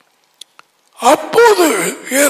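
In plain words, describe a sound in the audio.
An elderly man speaks with animation into a headset microphone.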